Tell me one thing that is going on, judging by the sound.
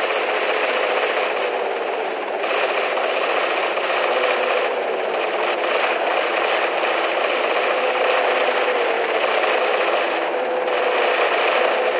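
A helicopter's rotor chops loudly and steadily.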